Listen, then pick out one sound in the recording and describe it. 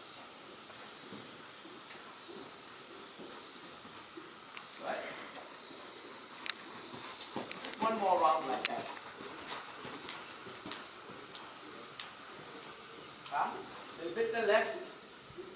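A horse's hooves thud softly on sand.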